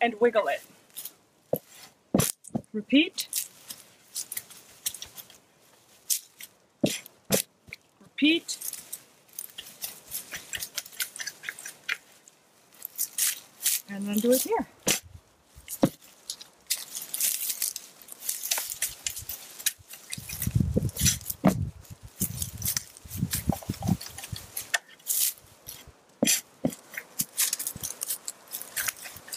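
A garden fork's tines crunch and scrape into dry soil and roots, again and again.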